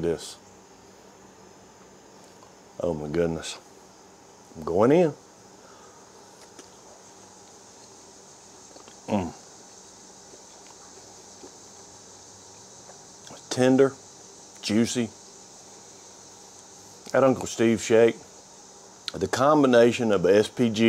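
A middle-aged man talks calmly into a close microphone, with long pauses.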